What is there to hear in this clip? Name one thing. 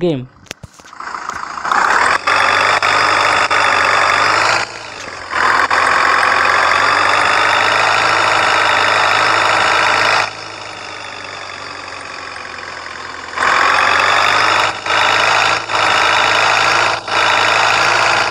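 A van engine drones steadily, rising and falling in pitch as the van drives on.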